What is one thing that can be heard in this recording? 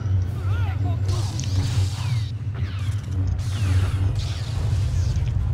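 Lightsabers hum and swoosh with electric crackles.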